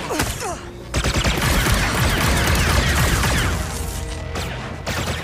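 Blaster shots fire and sparks crackle loudly.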